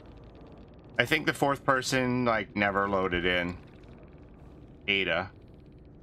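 A middle-aged man speaks with animation, close to a microphone.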